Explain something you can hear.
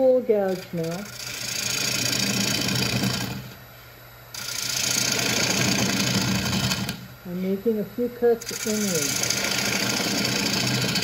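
A gouge scrapes and cuts into spinning wood in bursts.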